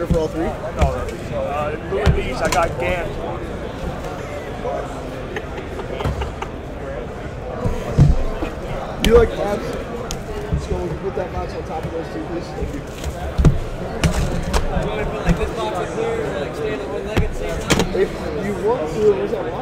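Cardboard boxes and wrappers rustle and tear as hands open them.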